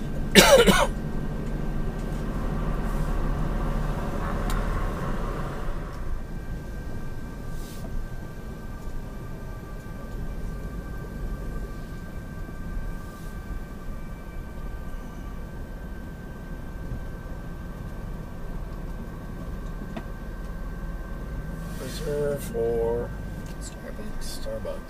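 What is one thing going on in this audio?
A car's tyres and engine hum on a paved road, heard from inside the car.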